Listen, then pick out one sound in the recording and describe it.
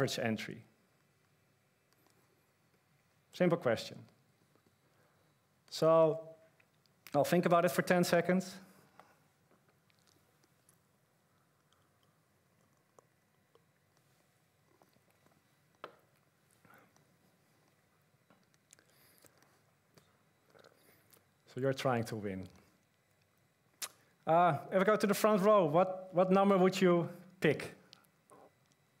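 A man speaks calmly through a microphone in a large echoing hall, with long pauses.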